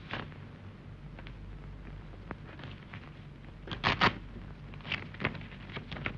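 Footsteps shuffle on a floor.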